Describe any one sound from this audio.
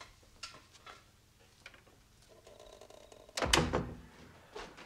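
A door thuds shut nearby.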